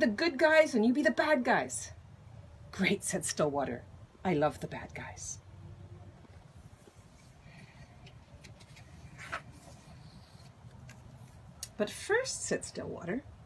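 An elderly woman reads aloud calmly and close by.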